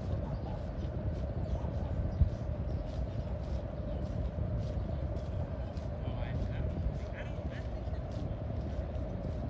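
Footsteps crunch at a steady walking pace on a sandy path.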